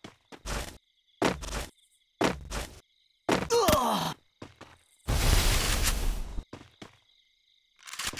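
Footsteps thud quickly on grass as a figure runs.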